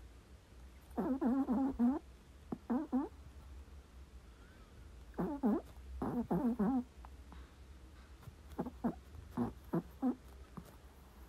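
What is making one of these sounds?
A sleeping dog whimpers softly in short bursts.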